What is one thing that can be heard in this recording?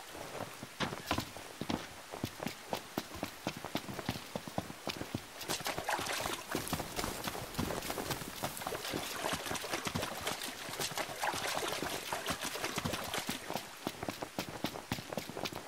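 Rain falls steadily outdoors.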